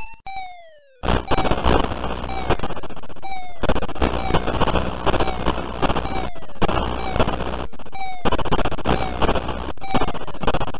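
A harsh, rumbling electronic noise drones on.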